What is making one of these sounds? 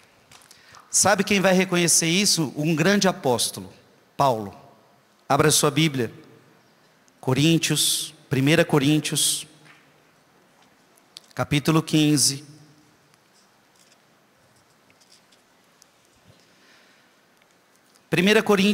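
A man speaks with animation through a microphone, echoing in a large hall.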